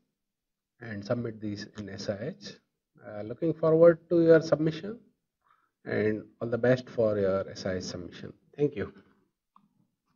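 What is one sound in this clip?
A man speaks calmly into a microphone, as if presenting.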